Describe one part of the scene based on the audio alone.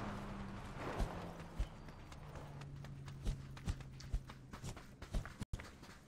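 A car engine hums nearby.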